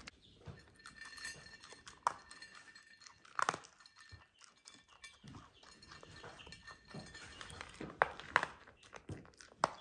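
A dog crunches and chews dry kibble up close.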